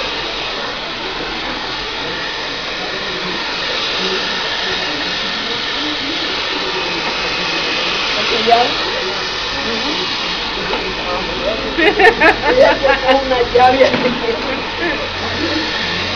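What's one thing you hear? A hair dryer blows steadily and loudly close by.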